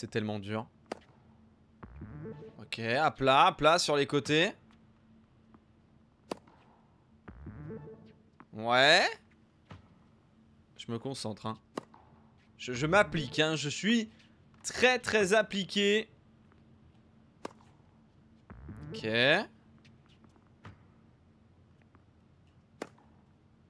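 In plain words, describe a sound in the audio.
A tennis racket strikes a ball with a sharp pop, again and again.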